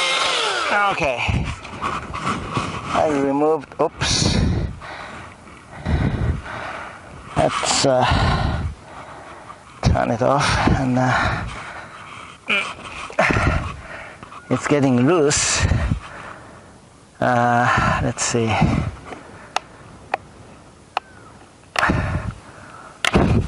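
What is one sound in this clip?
A chainsaw's starter cord is yanked again and again.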